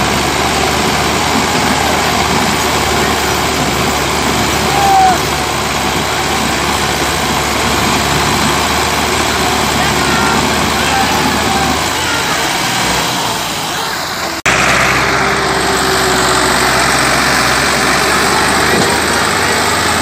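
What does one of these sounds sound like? Two diesel tractors roar under heavy load in a tug of war.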